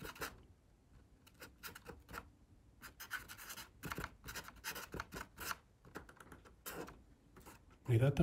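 A pen scratches softly across paper.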